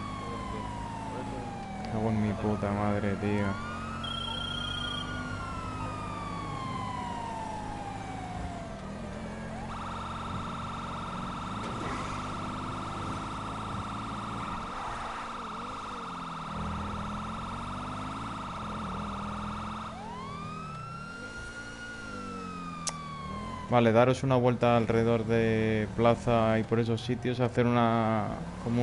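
A car engine hums steadily.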